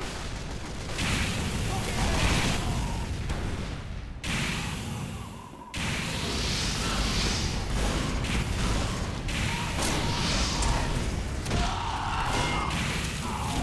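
A video game flamethrower roars in bursts.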